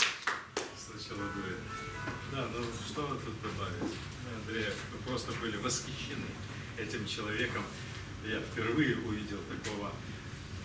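A middle-aged man speaks with animation to a small room.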